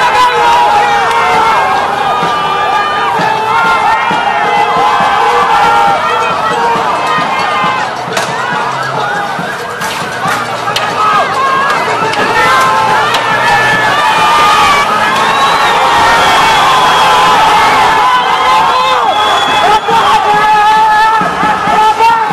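A crowd of protesters shouts outdoors.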